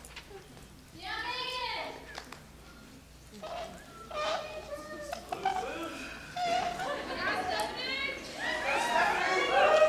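Young women speak faintly from a distance.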